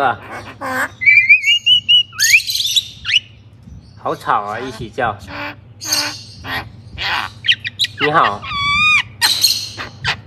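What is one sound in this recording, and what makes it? A mynah bird whistles in bright, wavering notes.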